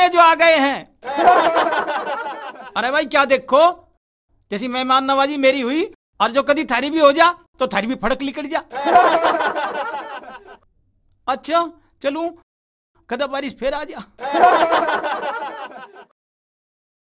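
An elderly man talks with animation, close by.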